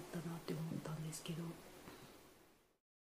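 A woman speaks calmly and softly close to a microphone.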